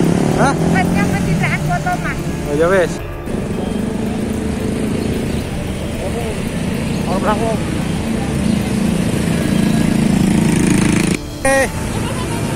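Voices of men and women chatter outdoors.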